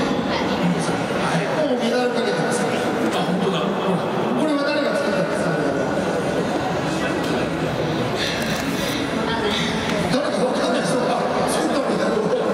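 A young boy speaks into a microphone over a loudspeaker.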